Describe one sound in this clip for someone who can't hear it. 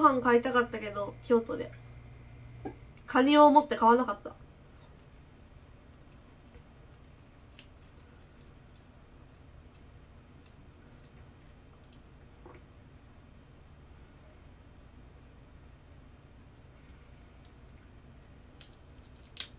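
A fork scrapes and taps lightly against food.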